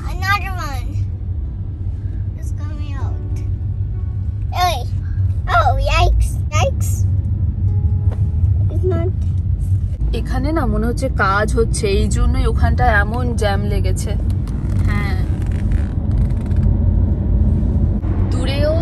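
A car engine and tyres rumble steadily from inside a moving car.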